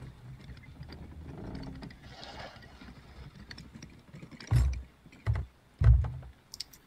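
Waves wash gently against a wooden ship.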